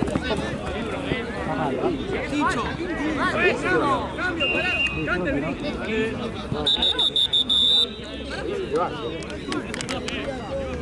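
Many young people shout and chatter around an open outdoor field.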